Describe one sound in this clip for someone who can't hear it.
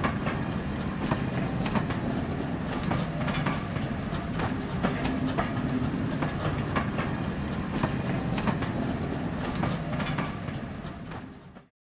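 A train rumbles past close by, wheels clicking over rail joints.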